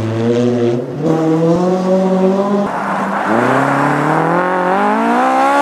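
A rally car engine revs as it drives on snow.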